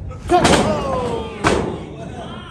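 Bodies thud heavily onto a wrestling ring's canvas.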